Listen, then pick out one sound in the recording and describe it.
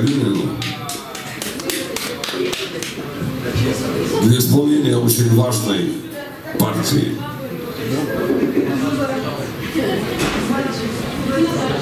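A man sings into a microphone on a live stage.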